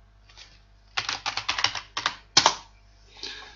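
Keys clack quickly on a computer keyboard.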